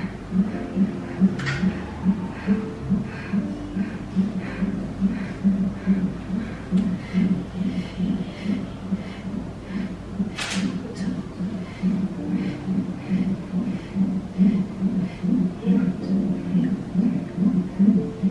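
A fetal heart monitor plays a fast, whooshing heartbeat.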